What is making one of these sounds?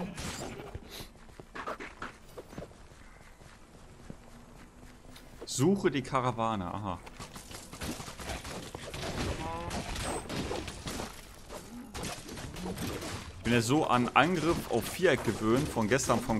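Game battle sounds clash and thud in quick bursts.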